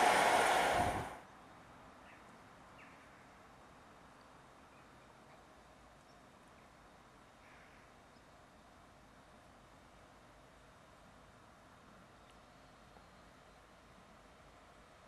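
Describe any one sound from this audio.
A diesel train rumbles as it approaches slowly along the track.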